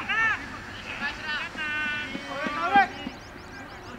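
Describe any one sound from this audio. Men shout excitedly outdoors at a distance.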